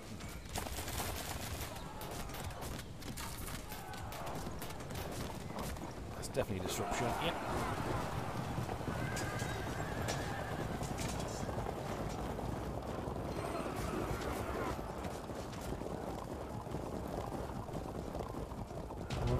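Battle noise of clashing soldiers and horses rumbles steadily.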